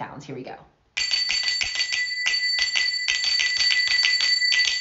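Small finger cymbals ring with a bright, rapid chiming.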